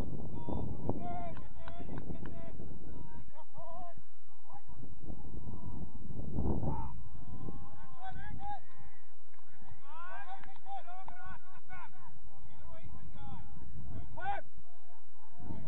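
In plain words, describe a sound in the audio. Young players shout and call out across an open field, some way off.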